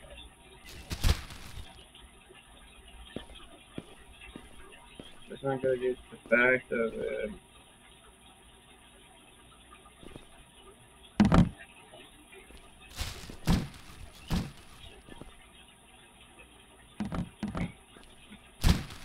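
A trash bag thumps into a plastic bin.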